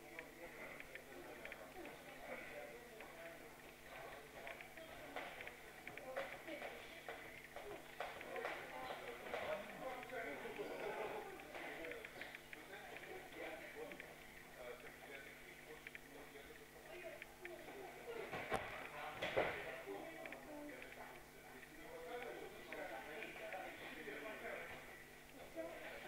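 Young people talk quietly in a large echoing room.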